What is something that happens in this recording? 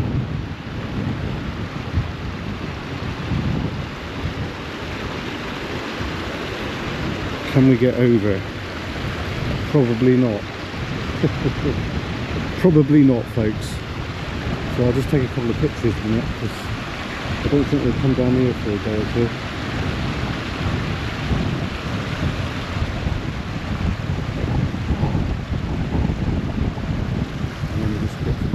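A small stream trickles and splashes over rocks.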